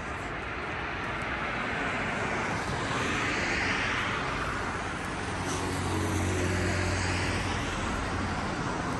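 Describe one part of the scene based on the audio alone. Cars pass by on a nearby road with a steady rushing hiss.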